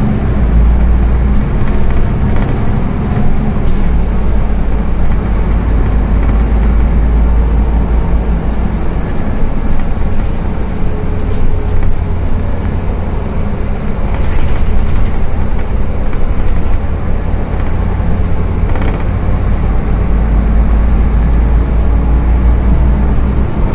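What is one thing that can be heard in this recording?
Loose fittings rattle and clatter inside the bus.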